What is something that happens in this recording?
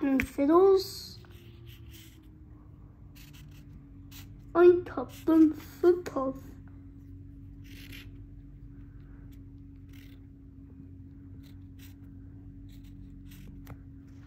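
A marker scratches softly on paper.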